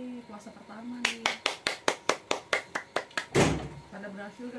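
A young woman claps her hands quickly in a rhythm.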